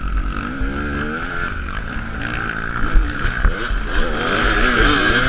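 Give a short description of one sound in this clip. A two-stroke enduro motorcycle engine runs close by, revving up and down.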